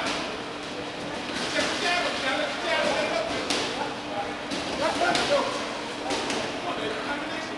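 Boxing gloves thud in quick punches.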